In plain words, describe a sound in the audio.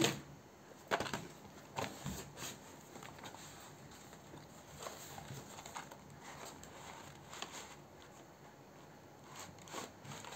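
A cardboard box rustles and scrapes as it is opened.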